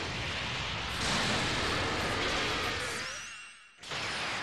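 Energy beams roar with crackling.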